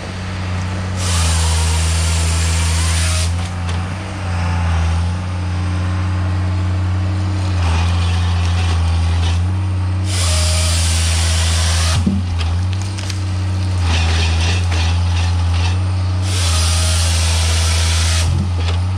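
A harvester saw whines loudly in bursts as it cuts through logs.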